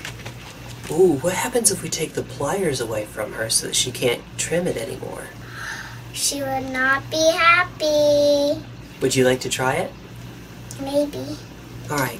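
A young girl talks excitedly into a nearby microphone.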